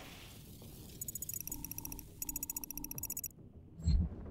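Short electronic beeps chirp in quick bursts.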